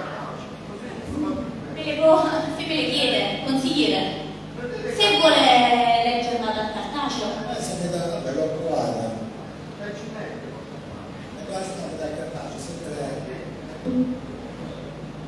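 Adults talk at a distance in a large echoing hall.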